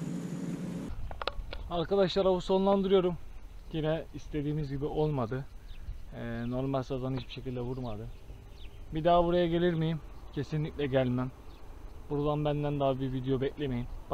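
A young man talks calmly, close to the microphone.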